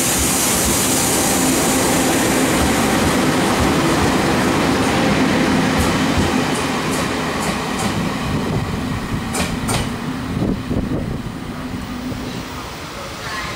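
A passenger train rumbles past close by and fades into the distance.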